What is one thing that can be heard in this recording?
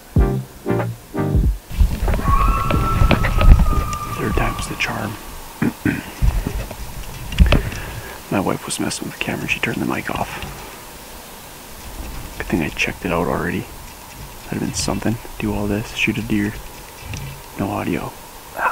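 A young man talks calmly and quietly, close to a microphone.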